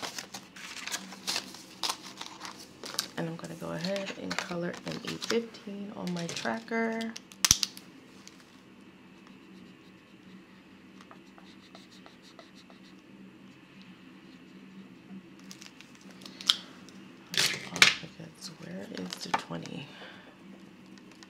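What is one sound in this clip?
Paper banknotes rustle and flick as they are counted by hand.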